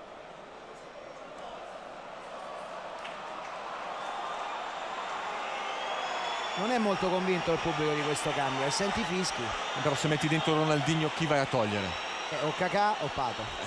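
A large stadium crowd roars and murmurs, swelling louder.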